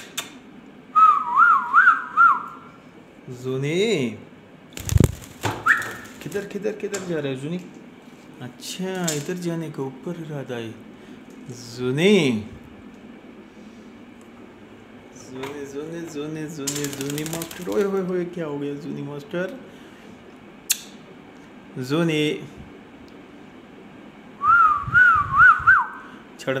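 A parrot whistles a shrill, warbling tune.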